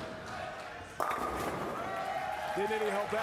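Bowling pins crash and scatter.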